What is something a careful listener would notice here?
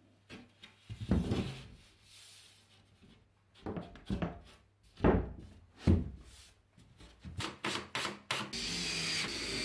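A sheet of plasterboard knocks and thumps against a frame.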